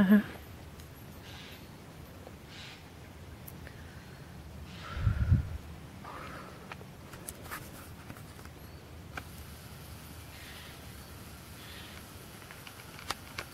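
Wind blows softly outdoors through reeds.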